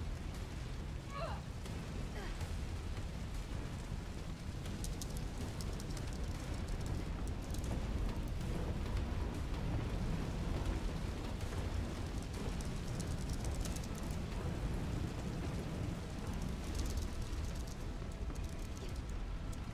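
Fire roars and crackles close by.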